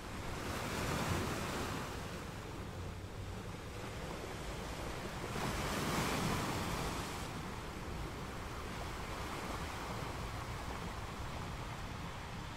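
Surf washes steadily over a rocky shore.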